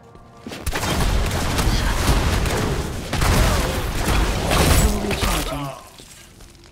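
Magic blasts crash and boom loudly in a fight.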